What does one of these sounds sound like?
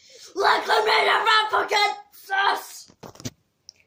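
A boy shouts excitedly close by.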